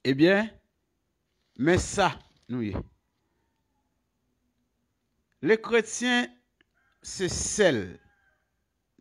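A man speaks calmly close to the microphone, in short phrases with pauses.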